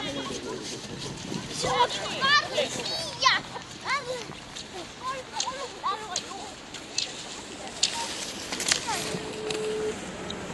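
Skis swish and scrape over packed snow as a skier glides past.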